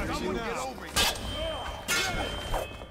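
A sword slashes with a sharp metallic swish.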